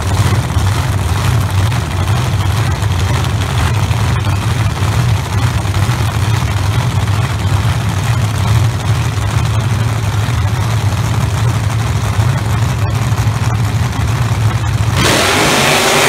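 Race car engines idle with a deep, loud rumble.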